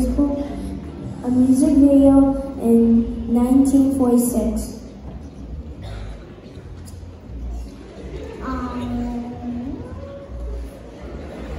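A young person sings in a large hall.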